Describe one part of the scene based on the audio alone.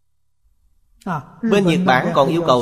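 An elderly man speaks calmly and warmly into a microphone.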